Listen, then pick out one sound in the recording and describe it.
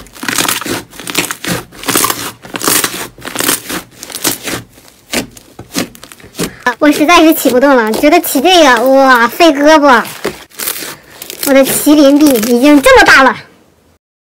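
Soft slime squelches and crackles as hands squeeze and knead it.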